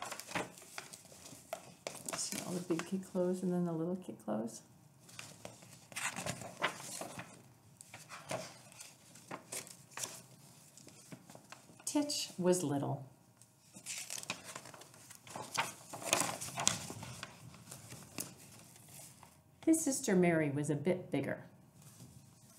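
A woman reads a story aloud, close to a microphone.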